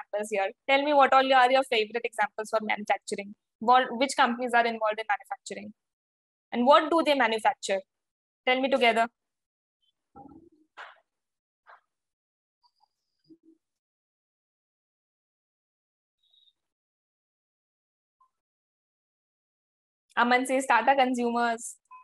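A young woman speaks calmly into a close microphone, with pauses.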